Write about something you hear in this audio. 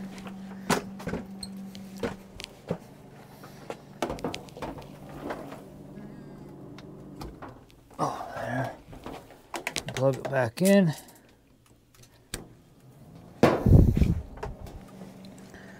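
Things knock and clatter inside a washing machine.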